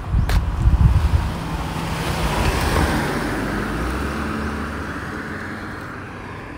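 A car drives past on the road and fades away.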